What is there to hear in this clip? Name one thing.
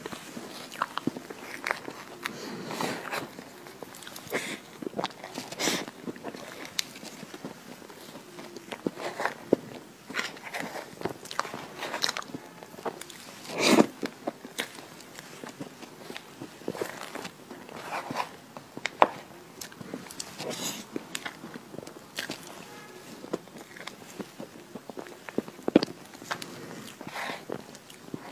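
A metal spoon scrapes and digs into soft cake on a plate.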